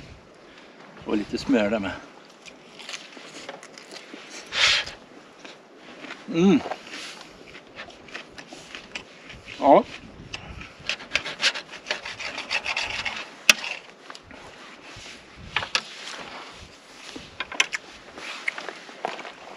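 A knife and fork scrape and clink on a plate.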